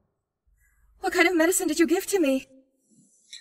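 A young woman asks a question in a worried voice, close by.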